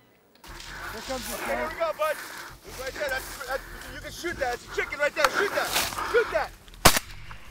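A man talks outdoors.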